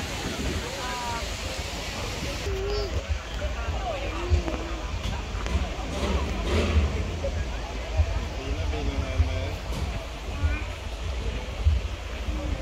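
A crowd of people chatters at a distance outdoors.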